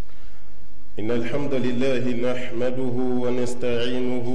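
A man speaks into a microphone, heard through loudspeakers in a large echoing hall.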